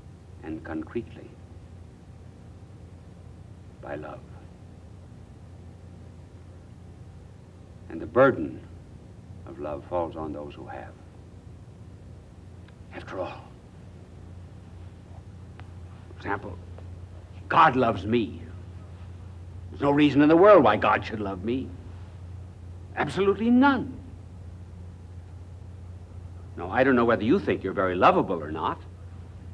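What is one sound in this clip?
An older man speaks slowly and deliberately into a microphone, with long pauses.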